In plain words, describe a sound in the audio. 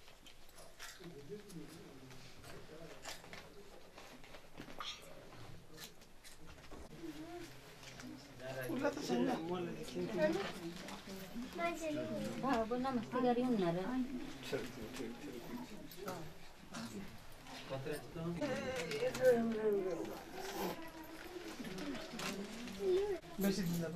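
Women talk nearby.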